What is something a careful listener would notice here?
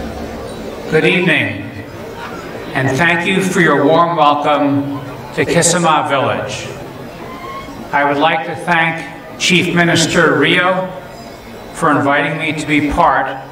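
An elderly man speaks calmly through a loudspeaker, echoing outdoors.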